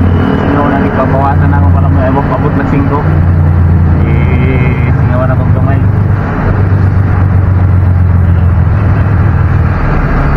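A truck engine hums steadily.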